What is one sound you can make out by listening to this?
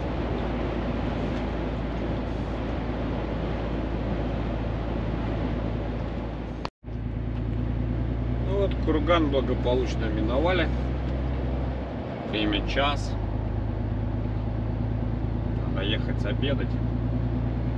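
A vehicle engine hums steadily from inside a cab.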